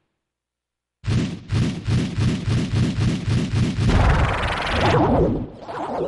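A spinning blade whirs with a fast, pulsing throb.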